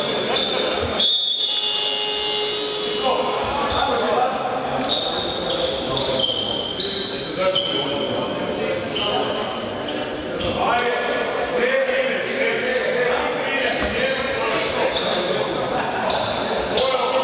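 Spectators chatter nearby in a large echoing hall.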